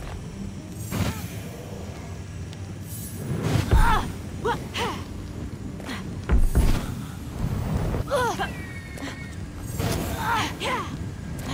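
Fiery blasts burst with sharp thumps.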